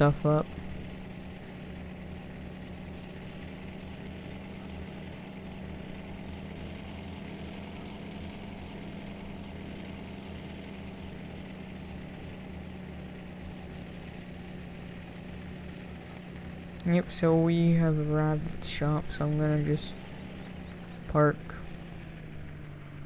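A pickup truck engine hums steadily as it drives.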